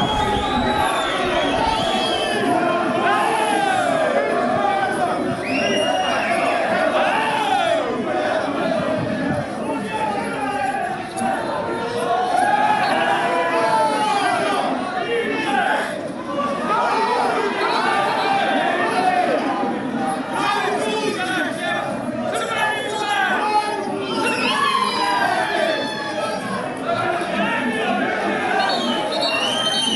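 A crowd of spectators shouts and chants loudly close by, outdoors.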